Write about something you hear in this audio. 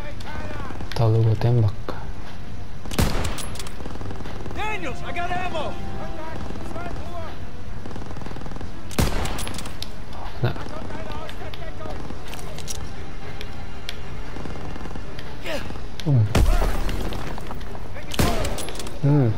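A rifle fires loud, sharp shots.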